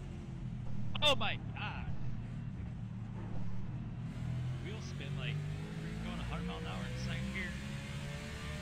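Tyres squeal through corners.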